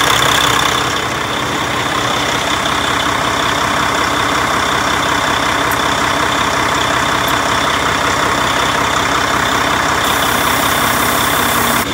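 An A/C recovery machine hums as it runs.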